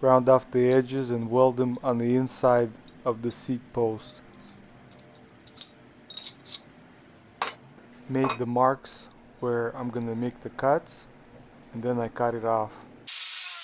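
Metal parts clink together as they are handled.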